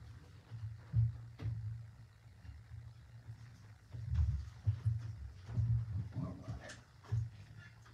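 Low thuds and knocks sound close by.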